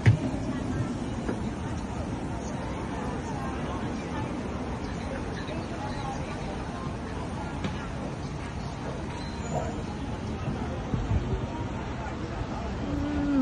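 Voices of passers-by murmur faintly in the open air.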